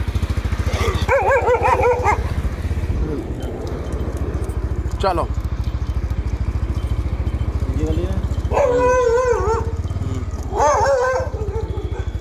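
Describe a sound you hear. A dog barks loudly several times.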